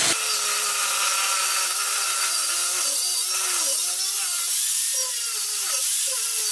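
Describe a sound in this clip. Metal screeches under a grinding disc.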